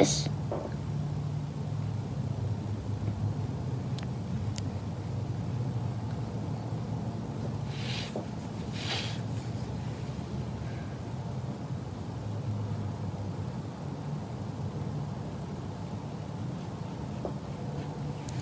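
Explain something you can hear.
A coloured pencil scratches softly on paper.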